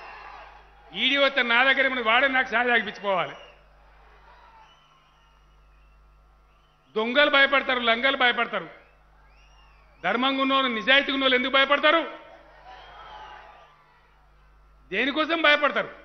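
A man speaks forcefully into a microphone over loudspeakers, in short bursts with pauses.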